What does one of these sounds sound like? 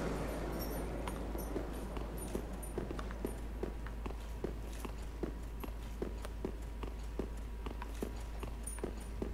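Armoured footsteps clank at a quick, steady pace.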